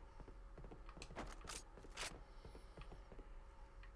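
A weapon clicks and rattles as it is swapped.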